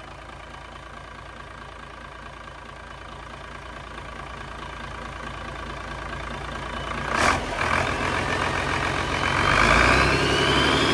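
A diesel engine idles with a low rumble, then revs up loudly.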